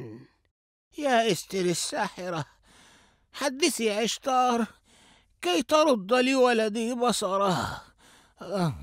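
An elderly man speaks with feeling.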